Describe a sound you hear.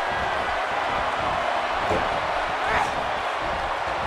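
Bodies slam onto a wrestling ring mat with heavy thuds.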